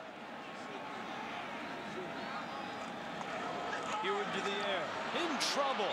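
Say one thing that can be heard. A large crowd cheers and roars in a stadium.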